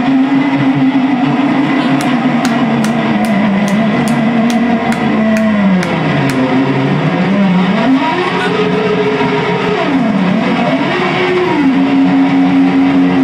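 A live band plays loud rock music in a room.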